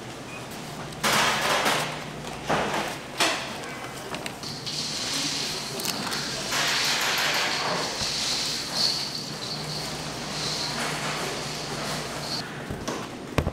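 Baking paper rustles and tears as it is peeled away.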